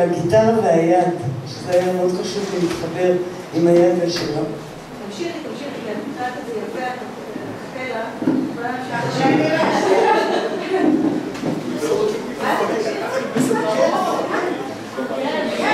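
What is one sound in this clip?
A woman speaks with animation into a microphone through loudspeakers.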